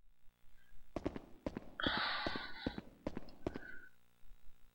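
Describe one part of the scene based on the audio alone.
Footsteps scuff and knock on a stone floor.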